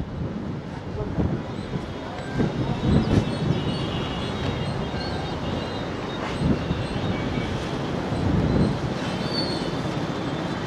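Floodwater roars steadily as it rushes through open dam gates.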